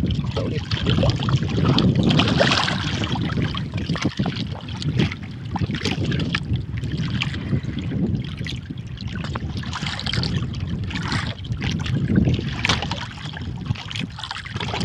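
Waves slap against a small boat.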